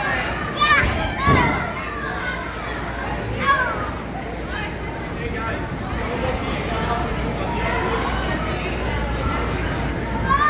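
Many children chatter in the background.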